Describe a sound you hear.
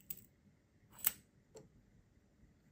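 A metal tool clicks as it is fitted and tightened.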